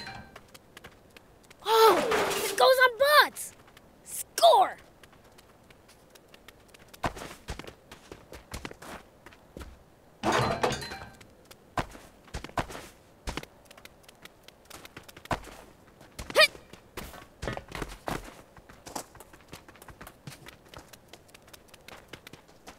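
Quick light footsteps patter on dry ground.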